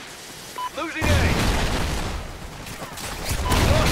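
An explosion booms with a low roar.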